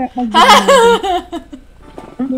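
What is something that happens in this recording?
A young woman laughs loudly and shrieks close to a microphone.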